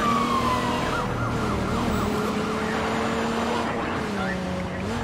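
A police siren wails in quick rising and falling cycles.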